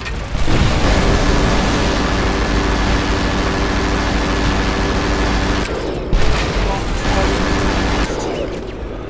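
A rotary autocannon fires in long bursts.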